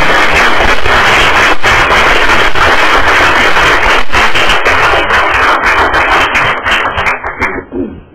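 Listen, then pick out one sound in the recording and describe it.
A crowd applauds loudly and steadily, then the clapping thins out and fades.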